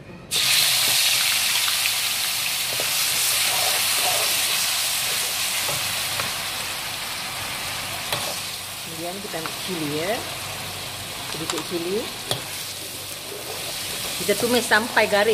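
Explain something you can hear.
A metal spatula scrapes against a metal pan.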